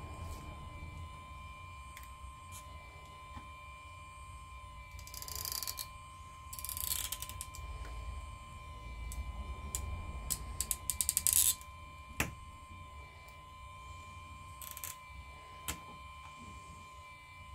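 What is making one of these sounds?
A small metal tool scrapes and clicks against a phone's edge.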